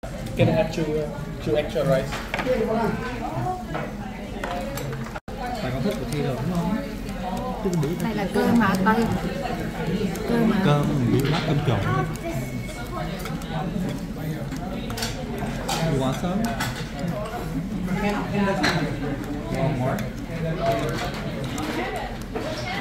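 Diners chatter in the background of a busy room.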